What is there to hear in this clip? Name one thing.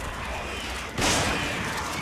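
A gunshot bangs loudly.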